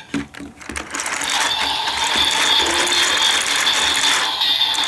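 A toy belt plays loud electronic sound effects and music.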